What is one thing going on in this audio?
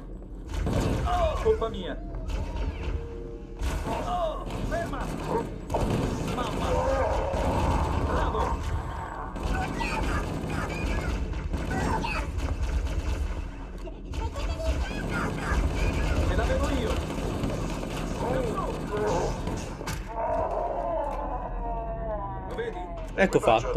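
Alien creatures squeal and growl.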